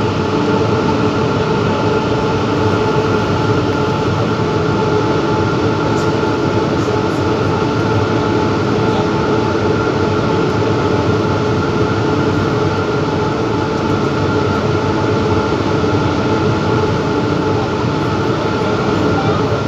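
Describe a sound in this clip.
Rubber tyres of an automated metro train roar at speed through a tunnel.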